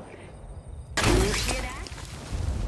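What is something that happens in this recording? A gunshot rings out loudly and close.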